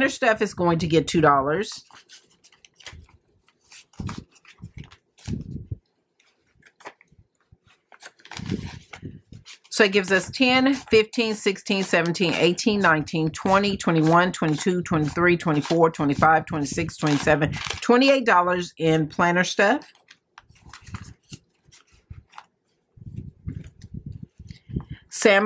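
Paper banknotes rustle and crinkle as hands sort and count them.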